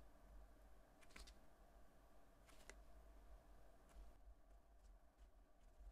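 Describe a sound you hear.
A fingertip taps softly on a phone's glass.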